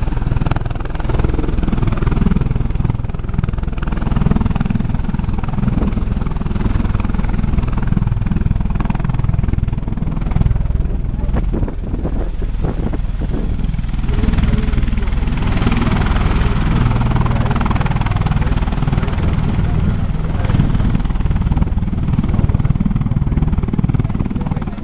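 Turbine engines whine at high pitch.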